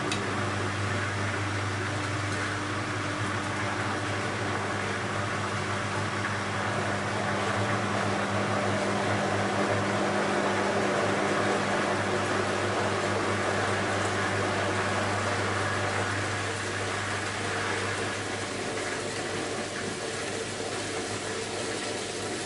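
A washing machine motor hums steadily as the drum turns.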